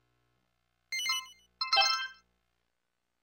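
A bright electronic chime rings twice in quick succession.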